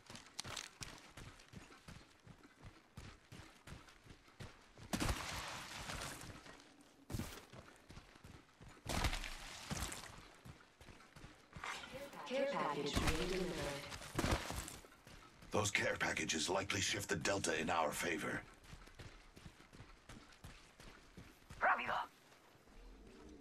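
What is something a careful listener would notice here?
Footsteps run on dirt.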